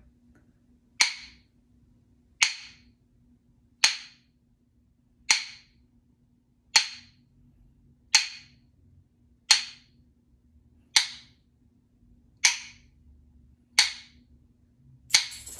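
Plastic tubes strike each other in a steady, even beat, each hit ringing briefly.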